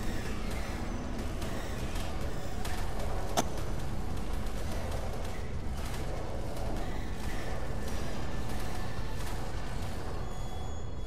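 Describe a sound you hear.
Hits land with sharp thuds during a fight.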